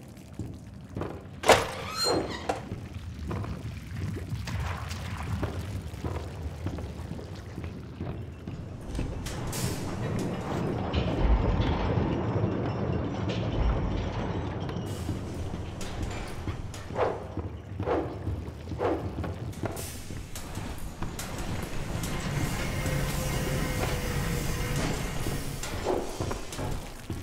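Footsteps thud on creaking wooden floorboards.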